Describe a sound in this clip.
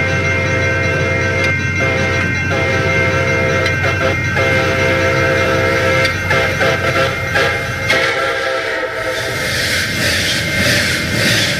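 A train rumbles closer and rolls past on the rails.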